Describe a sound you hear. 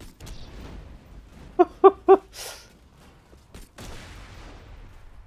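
A gun fires electric shots in quick bursts.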